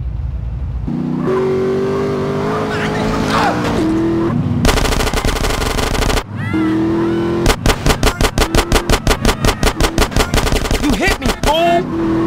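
A car engine revs and hums steadily.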